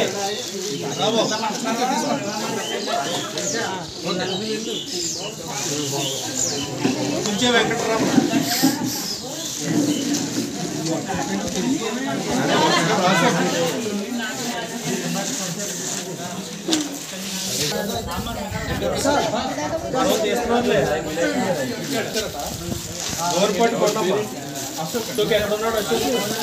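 A crowd of men and women talk over one another outdoors.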